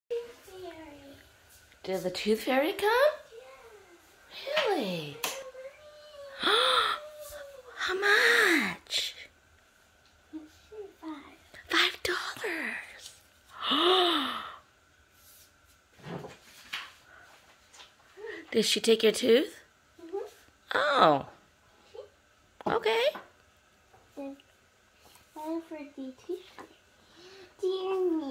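A young girl talks and exclaims excitedly close by.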